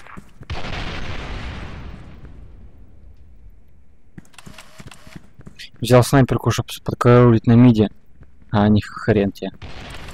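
Rapid gunshots ring out.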